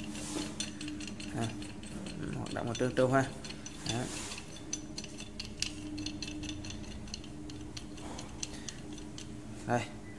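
A metal adjustable wrench clicks and rattles as its screw is turned.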